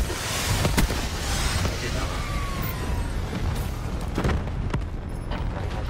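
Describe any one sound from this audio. A gun fires sharp shots.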